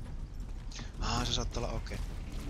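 A young man speaks into a headset microphone.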